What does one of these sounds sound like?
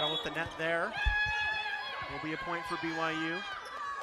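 Young women shout excitedly as they celebrate.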